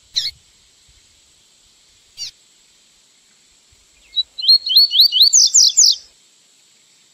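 A small songbird sings a quick series of rising whistled notes close by.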